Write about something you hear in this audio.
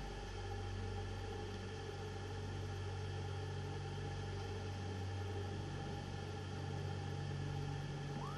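A metal ball rolls along with a low rumble.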